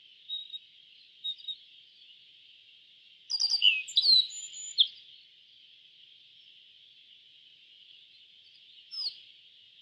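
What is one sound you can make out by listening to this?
A small bird sings a short, bright song of chirps and whistles.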